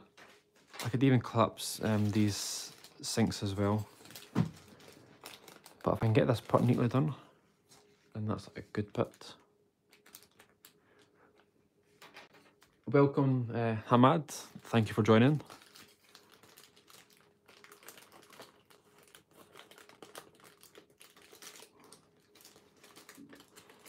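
Thin paper crinkles and rustles softly as it is folded.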